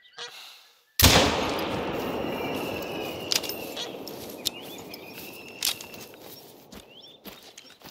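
A rifle fires a single loud shot that echoes and rolls away outdoors.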